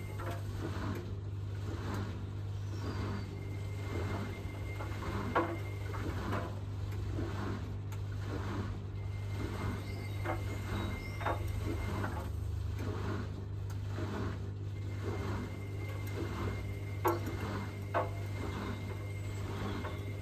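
Wet laundry sloshes and thumps inside a turning drum.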